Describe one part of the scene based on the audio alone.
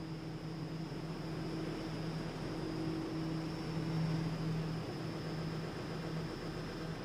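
A subway train rolls past with a louder rumble.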